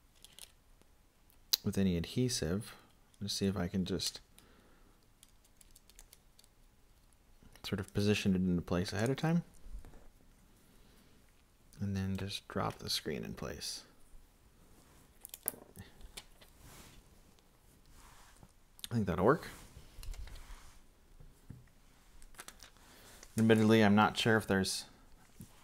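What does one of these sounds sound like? Small plastic parts click and tap softly as they are pressed into a casing.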